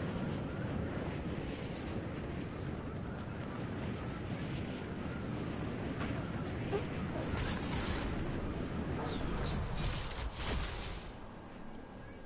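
Wind rushes past loudly during a fast fall.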